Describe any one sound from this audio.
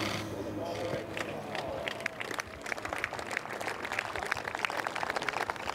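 A crowd of spectators applauds outdoors.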